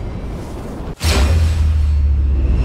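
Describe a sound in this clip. A cannon fires with a loud, deep boom.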